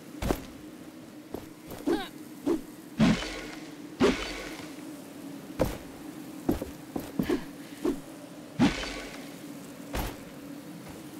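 Footsteps thud on stone and wood as a figure runs and climbs.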